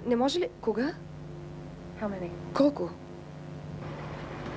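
A young woman speaks quietly and anxiously into a telephone.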